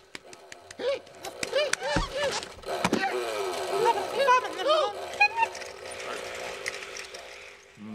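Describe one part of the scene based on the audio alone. A small motor sled putters as it drives off.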